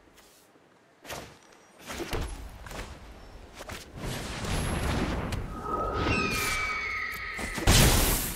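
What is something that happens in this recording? Digital game sound effects whoosh and thud as playing cards are placed and attack.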